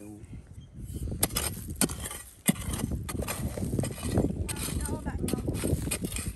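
A metal blade scrapes and digs through loose stones and soil.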